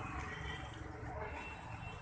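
A thin plastic bag crinkles.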